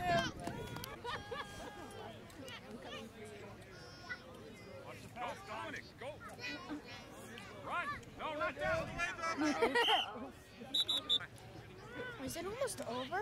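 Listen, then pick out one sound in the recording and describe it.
Children and adults shout and cheer outdoors at a distance.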